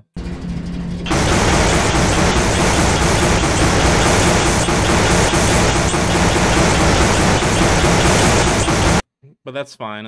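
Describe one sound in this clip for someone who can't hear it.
A buggy engine roars loudly over rough ground.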